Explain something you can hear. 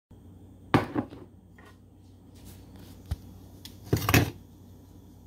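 A ceramic mug knocks down onto a countertop.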